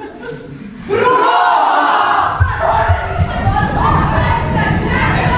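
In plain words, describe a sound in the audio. A crowd of young performers shouts and scuffles loudly together.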